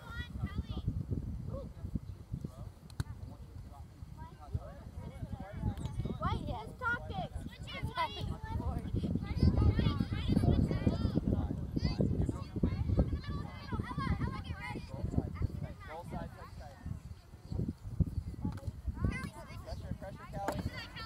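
Young girls shout and call out to each other at a distance.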